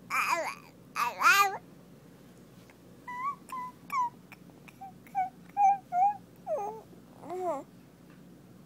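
A baby squeals and babbles loudly close by.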